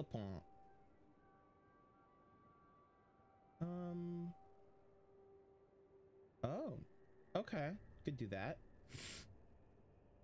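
Short electronic chimes and whooshes sound from a game menu.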